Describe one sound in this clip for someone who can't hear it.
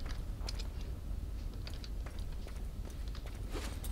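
A fire roars and crackles nearby.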